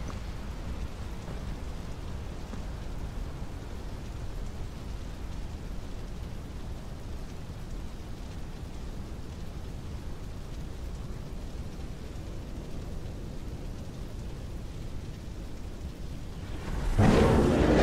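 Fire crackles and rumbles low.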